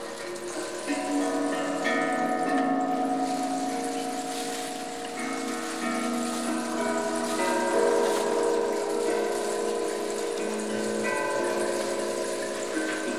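Gongs are struck with mallets, ringing in a melodic pattern with long, overlapping tones.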